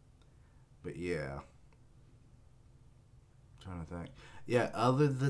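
A young man speaks calmly and close to a microphone, in short phrases.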